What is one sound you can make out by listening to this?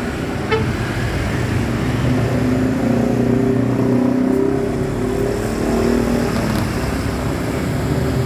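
A bus engine revs and rumbles as the bus pulls away close by.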